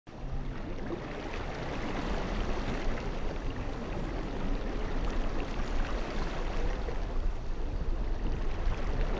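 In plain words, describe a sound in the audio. Small waves wash and splash softly onto a shore.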